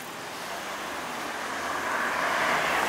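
A car drives past close by, growing louder.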